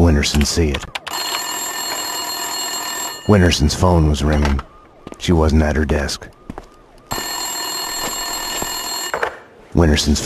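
A telephone rings loudly.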